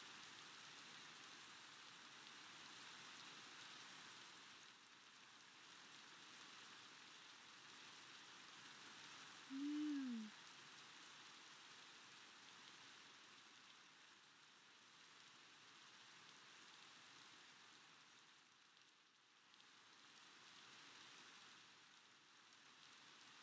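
Steady rain falls and hisses.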